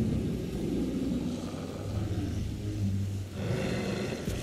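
A large beast growls deeply, close by.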